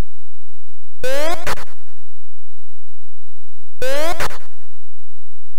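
A retro computer game plays a short burst of rising electronic beeps.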